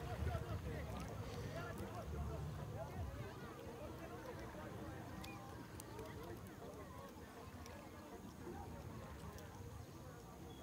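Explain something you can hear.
Water laps gently at a bank.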